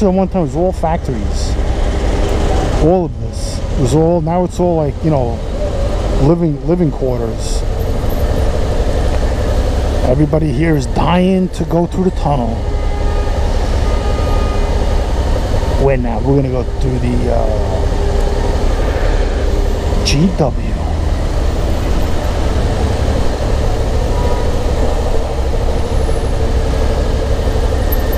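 Wind rumbles against a microphone on a moving motorcycle.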